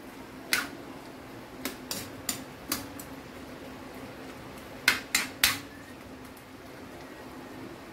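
A spoon clinks and scrapes against a metal pan.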